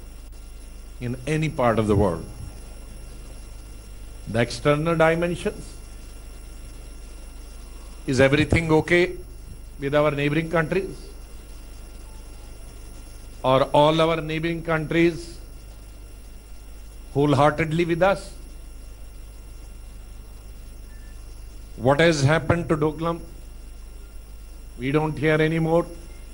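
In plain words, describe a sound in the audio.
A man speaks into a microphone in short phrases with long pauses.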